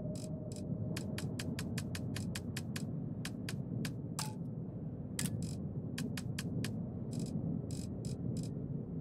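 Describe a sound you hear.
Soft menu clicks tick quickly, one after another.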